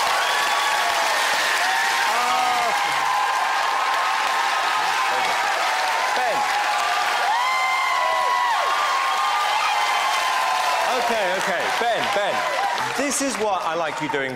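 A large audience cheers and screams loudly in an echoing hall.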